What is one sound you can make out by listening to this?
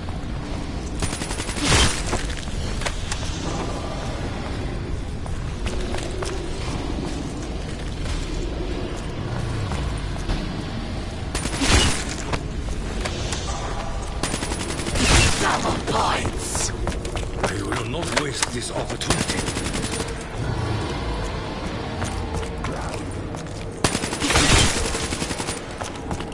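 Gunshots fire in bursts with loud blasts.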